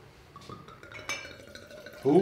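A glass bottle clinks against a wine glass.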